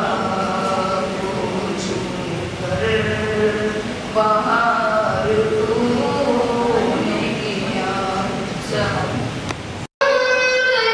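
A boy chants melodically into a microphone, heard through loudspeakers.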